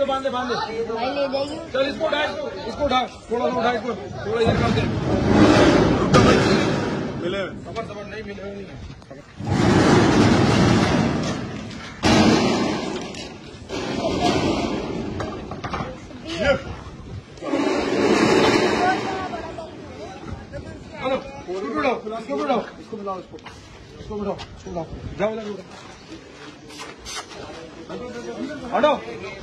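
Several men talk with animation nearby, outdoors.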